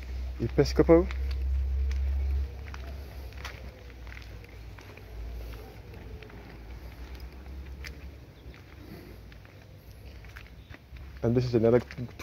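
Footsteps scuff slowly on a paved path.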